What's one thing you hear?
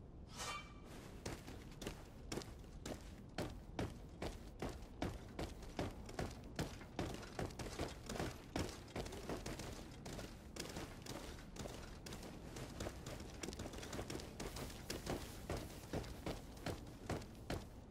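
Footsteps run quickly over a stone floor.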